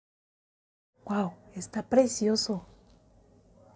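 A young woman speaks close up, calmly and clearly.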